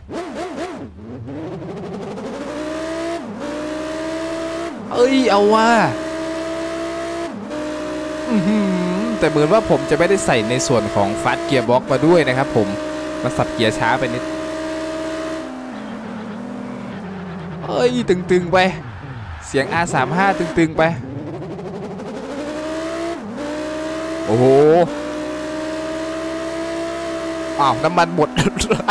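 A sports car engine roars and revs up through the gears, dropping in pitch at each shift.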